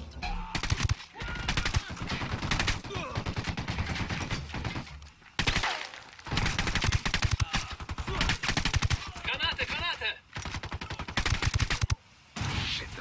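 Rapid gunfire crackles in quick bursts.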